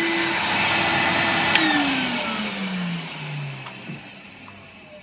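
A canister vacuum cleaner is switched off and its motor winds down.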